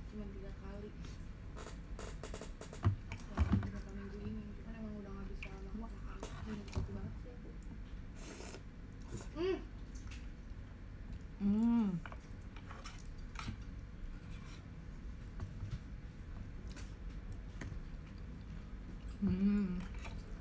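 Chopsticks click and tap against a bowl.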